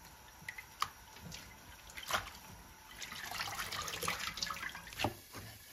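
Tap water splashes into a sink.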